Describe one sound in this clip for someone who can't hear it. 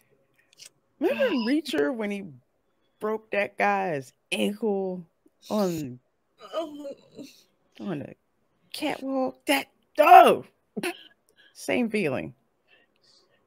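A middle-aged woman talks with animation over an online call.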